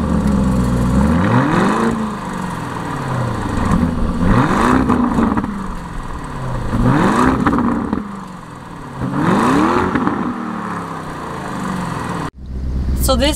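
A car engine revs up and down repeatedly with a deep roar.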